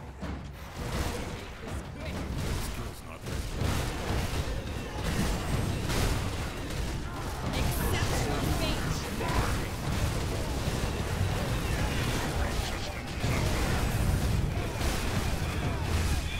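Heavy impacts thud and boom during a fight.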